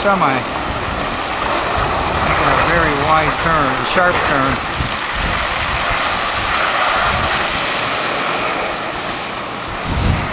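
A truck engine rumbles as a truck pulls slowly away.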